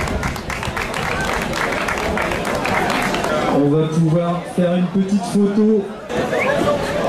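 A man speaks into a microphone through loudspeakers, outdoors.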